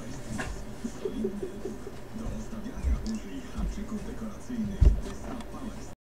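Footsteps thud softly on a carpeted floor close by.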